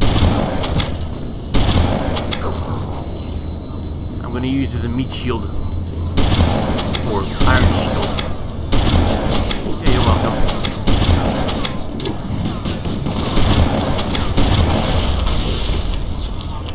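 Shotgun blasts boom in quick bursts.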